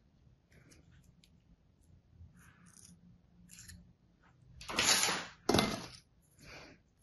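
Sand crunches softly as a mould is pressed and lifted.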